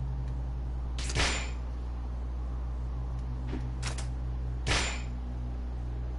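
Short swooshing menu sounds play a few times.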